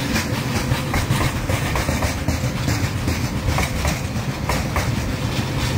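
A freight train rumbles past close by.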